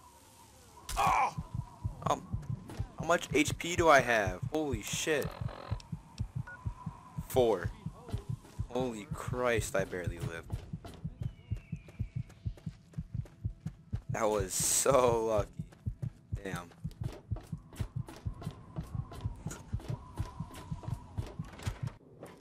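Footsteps thud quickly and steadily on hard ground.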